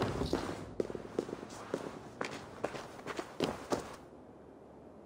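Footsteps thud on a stone floor.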